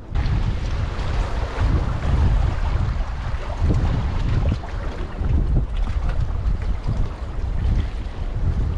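Choppy water laps against rocks.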